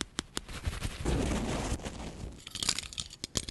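Fabric rustles and scrunches close to a microphone.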